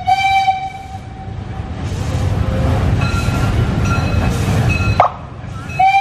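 A steam locomotive chugs and rumbles closer.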